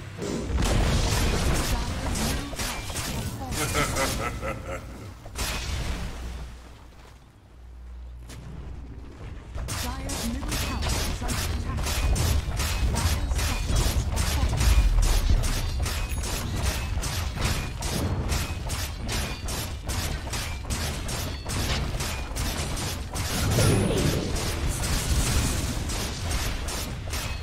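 Video game battle effects clash, crackle and thud rapidly.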